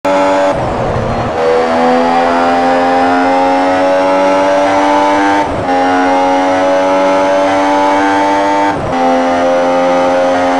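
A racing car engine screams at high revs, rising in pitch and briefly dropping at each gear change.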